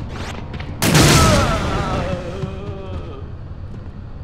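A zombie lets out a long, wavering groan.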